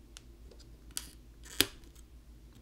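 A plastic pry tool clicks against a phone's frame.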